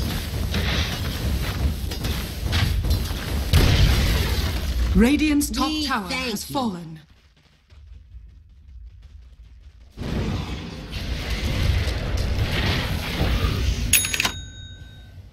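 Magic spells burst and crackle in a fantasy battle game.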